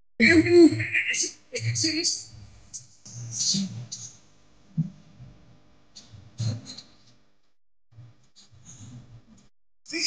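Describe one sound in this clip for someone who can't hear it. A young man talks close to a phone microphone.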